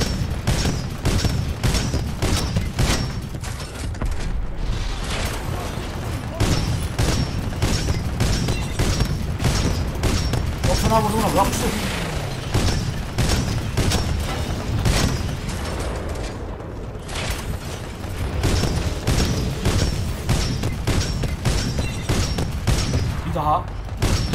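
A heavy gun fires rapid bursts of loud shots.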